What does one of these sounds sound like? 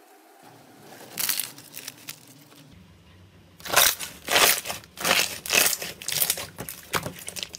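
Hands squeeze and squelch clear slime with loud wet pops.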